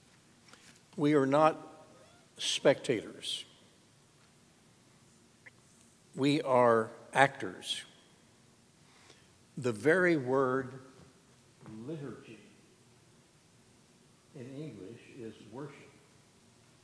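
An elderly man speaks slowly in short phrases through a microphone in an echoing hall.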